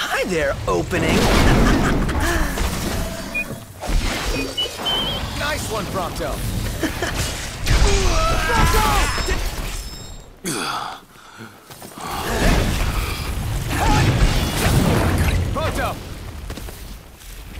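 Young men shout and grunt while fighting.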